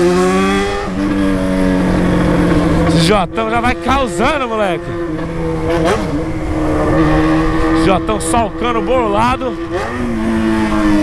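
A motorcycle engine hums steadily and changes pitch as the rider shifts.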